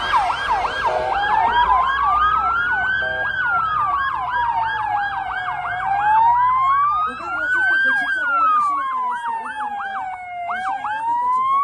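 A police siren wails, slowly rising and falling.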